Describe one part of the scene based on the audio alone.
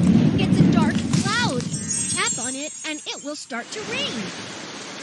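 A young person talks close to a microphone.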